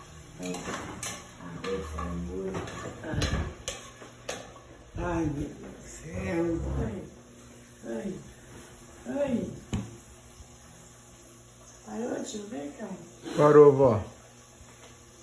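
An elderly woman talks in a lively way close by.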